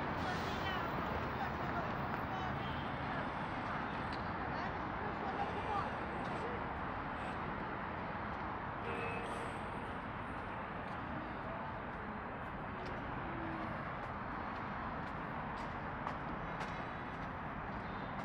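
Footsteps tap on paving close by.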